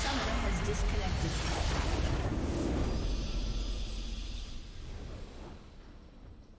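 A large crystal shatters with a booming explosion.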